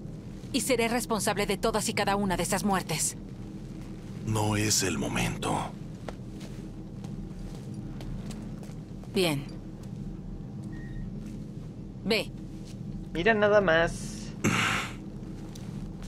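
A middle-aged woman speaks calmly and seriously.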